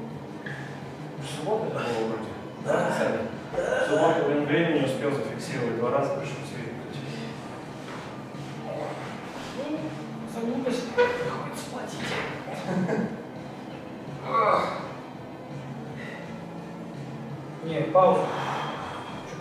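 A barbell's weight plates clank on the rack.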